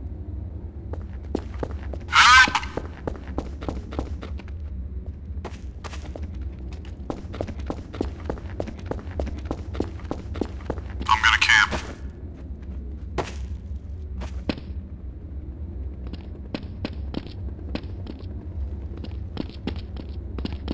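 Footsteps tap steadily on hard stone ground.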